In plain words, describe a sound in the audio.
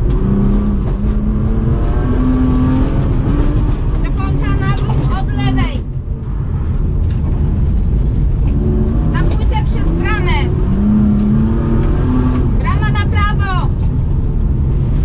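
A car engine roars and revs up and down close by.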